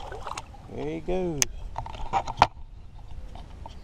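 Water splashes against the side of a boat.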